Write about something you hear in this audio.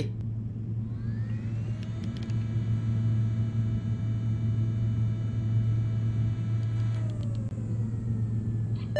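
An elevator motor whines steadily as the car moves.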